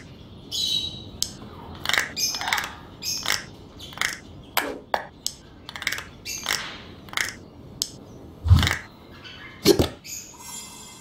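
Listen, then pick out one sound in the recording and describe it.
Game pieces click softly into place, one after another.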